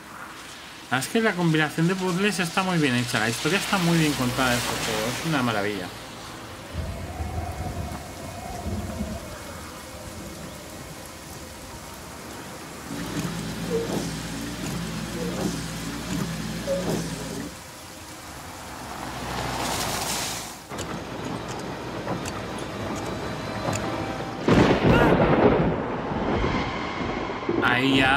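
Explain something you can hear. A car engine hums as a car drives along a wet road.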